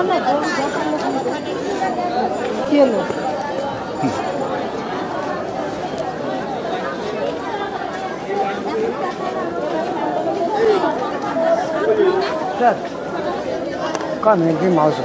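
A crowd of women and men talk loudly over one another close by.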